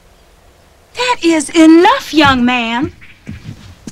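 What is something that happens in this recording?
A young woman speaks in a loud, emotional, wavering voice close by.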